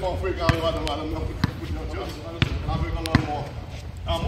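A basketball is dribbled on an outdoor asphalt court.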